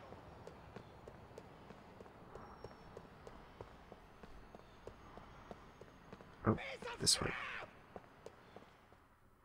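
Quick footsteps shuffle on hard ground.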